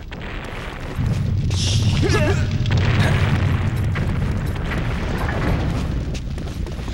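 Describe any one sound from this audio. A fire roars with a deep, rumbling whoosh.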